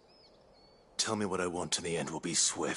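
A man speaks in a low, stern voice close by.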